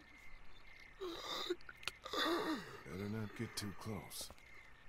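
Zombies groan and moan nearby.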